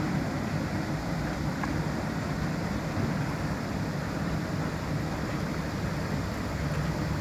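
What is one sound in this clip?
A ship's engines rumble low and steady.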